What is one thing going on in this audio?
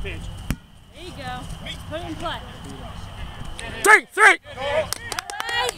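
Young men shout and cheer outdoors across an open field.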